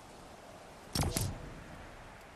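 A short game interface click sounds.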